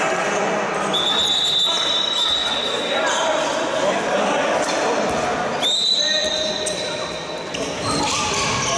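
A referee blows a whistle in a large echoing hall.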